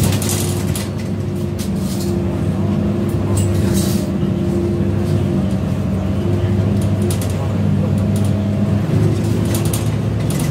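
A bus engine hums steadily from inside while driving.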